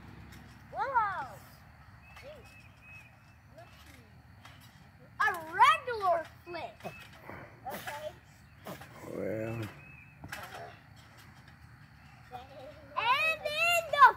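Young children talk and shout excitedly close by.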